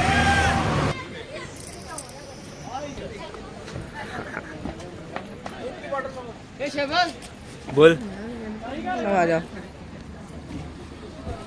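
Men and women chatter nearby.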